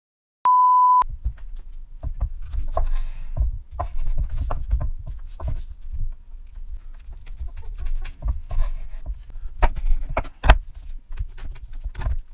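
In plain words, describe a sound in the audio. A knife slices through a tomato onto a wooden board with crisp, repeated cuts.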